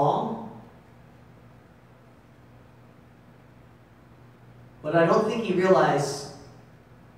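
A man speaks calmly into a microphone, heard through loudspeakers in a large echoing room.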